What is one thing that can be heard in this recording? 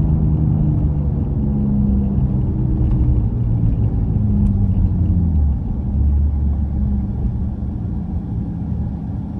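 A car engine hums and rumbles steadily from inside the cabin.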